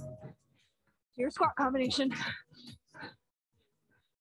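A woman speaks with animation through a microphone on an online call.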